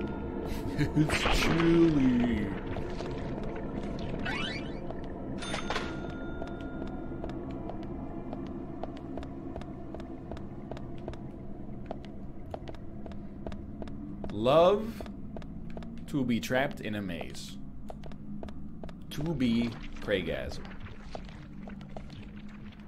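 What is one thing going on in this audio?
Footsteps tap steadily along a hard floor.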